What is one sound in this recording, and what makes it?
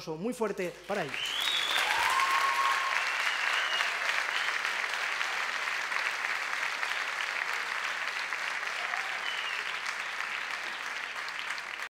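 A large audience applauds loudly in a big echoing hall.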